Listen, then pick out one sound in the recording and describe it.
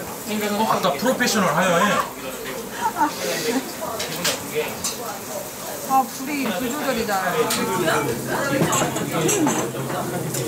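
Meat sizzles on a grill.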